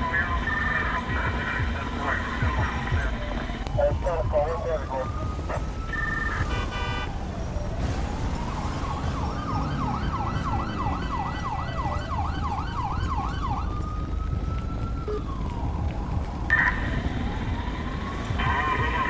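Footsteps walk steadily on pavement.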